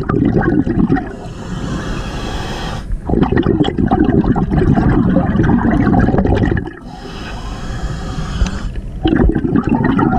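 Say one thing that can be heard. A diver's breathing regulator hisses softly between the bursts of bubbles.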